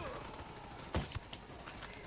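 A suppressed rifle fires a single sharp shot.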